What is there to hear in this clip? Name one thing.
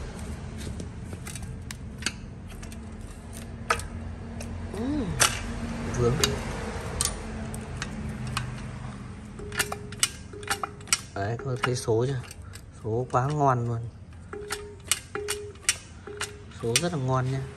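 Plastic wire connectors click and rattle.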